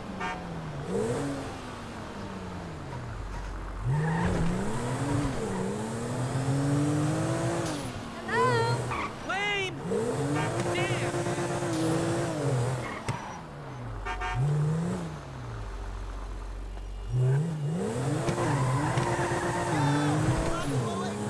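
A car engine revs up and down as it speeds along.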